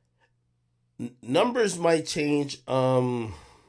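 A man speaks loudly and with animation, close to a microphone.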